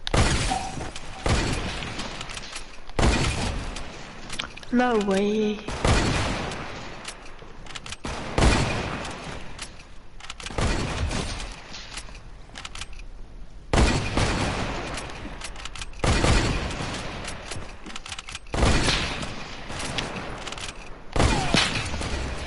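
Gunshots bang in sharp bursts, over and over.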